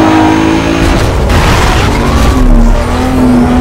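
Police sirens wail nearby.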